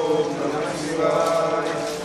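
Water pours and splashes onto a stone.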